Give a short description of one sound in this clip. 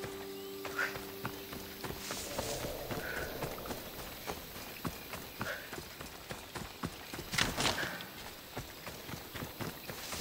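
Footsteps crunch on dry grass and leaves at a steady running pace.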